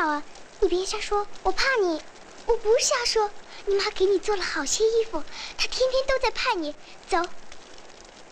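A second young girl answers quietly.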